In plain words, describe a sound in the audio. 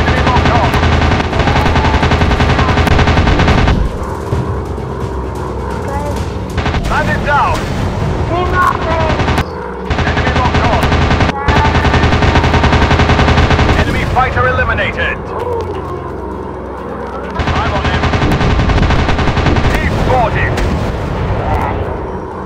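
A propeller plane's engine drones steadily, swelling and easing.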